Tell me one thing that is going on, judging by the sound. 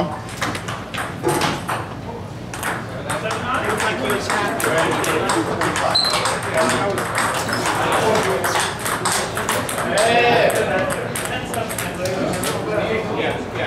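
Table tennis balls click rapidly against paddles and tables.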